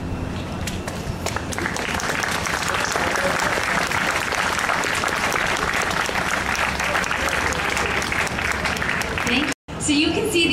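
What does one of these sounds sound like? A band plays a lively tune outdoors.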